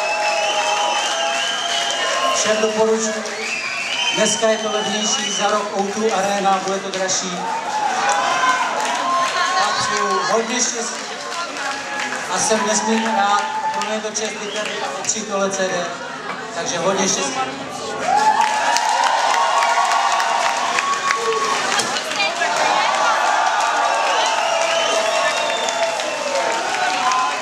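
A young man speaks loudly into a microphone, heard through loudspeakers in an echoing hall.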